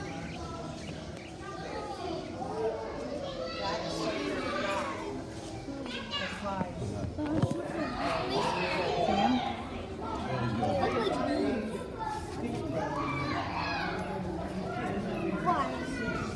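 Several people talk with animation close by.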